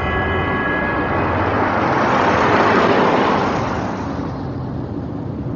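A car rushes past on a wet road with a whoosh.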